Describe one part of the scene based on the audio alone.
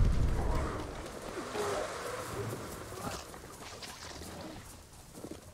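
Footsteps rustle quickly through tall grass and undergrowth.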